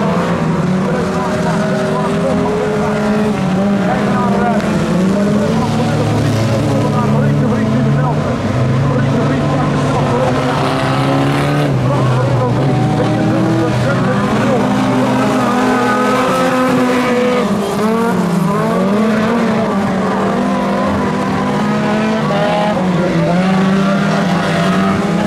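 Several car engines roar and rev as they race around a dirt track.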